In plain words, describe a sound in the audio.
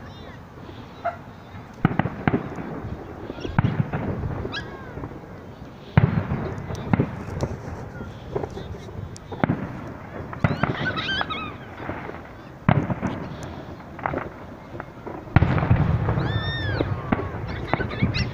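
Fireworks whistle as they rise.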